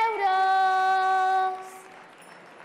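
A young girl sings a long, held note over a loudspeaker.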